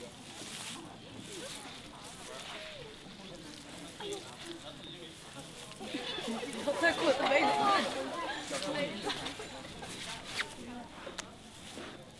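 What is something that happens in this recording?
Dry leaves crackle under a rolling panda cub.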